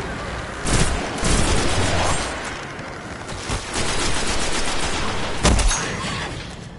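Gunshots fire in loud, sharp bursts.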